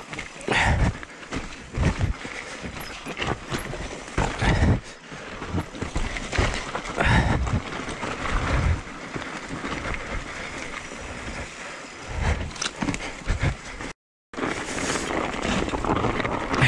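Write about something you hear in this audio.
Bike tyres rumble and crunch over a rough dirt trail.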